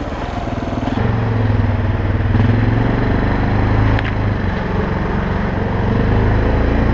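A quad bike engine rumbles steadily close by.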